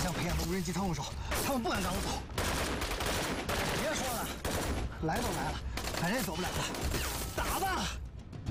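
A young man speaks urgently and close by.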